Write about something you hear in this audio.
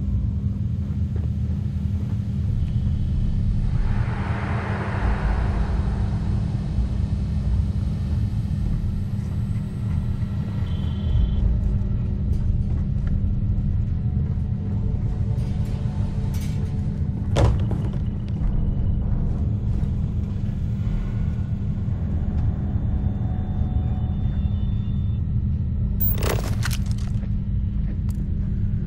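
Footsteps tread on a hard metal floor.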